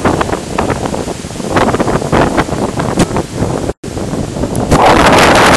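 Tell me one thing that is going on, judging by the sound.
Wind blows in rough gusts outdoors.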